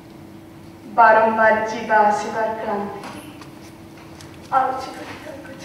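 A woman speaks with strong emotion, her voice ringing out.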